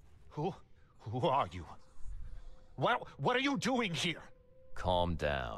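An older man asks sharply and with alarm.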